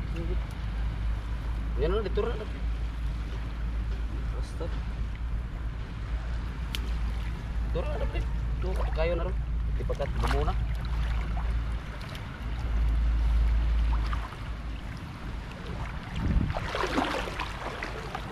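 Water splashes softly around legs wading in shallows.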